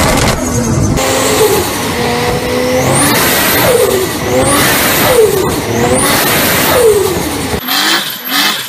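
A car engine on a test rig revs hard again and again, climbing steeply each time.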